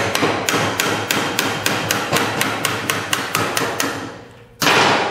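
A hammer taps rapidly on metal.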